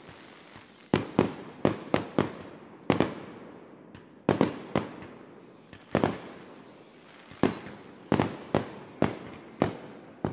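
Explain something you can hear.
Fireworks burst with loud, sharp bangs that come one after another.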